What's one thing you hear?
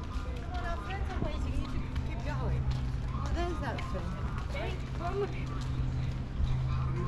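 Young women talk casually nearby as they walk past.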